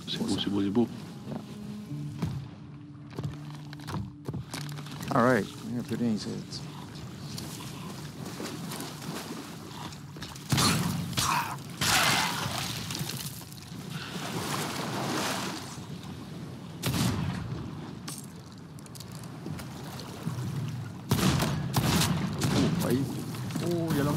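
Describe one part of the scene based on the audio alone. Waves lap softly at the shore.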